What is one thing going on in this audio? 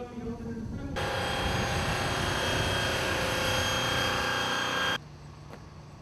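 A heavy truck engine roars as it drives past.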